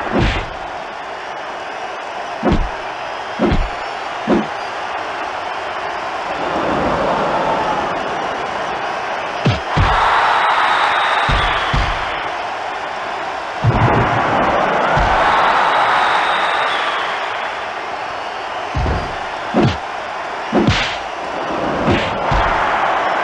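A crowd cheers loudly throughout.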